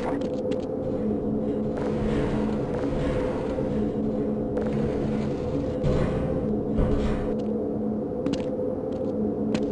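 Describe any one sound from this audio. Footsteps clank on a metal ladder, one after another.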